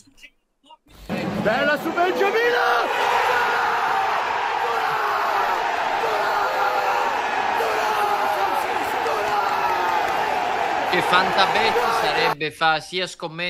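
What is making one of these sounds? A man shouts and sings with excitement close by.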